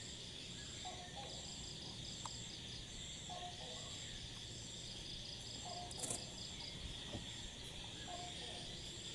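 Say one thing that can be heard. A bird gives a short two-note whistle again and again.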